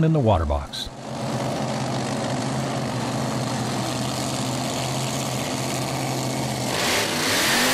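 A dragster engine drones steadily at high speed.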